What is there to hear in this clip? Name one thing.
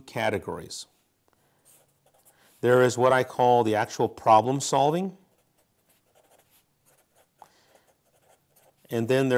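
A felt-tip marker squeaks faintly across paper.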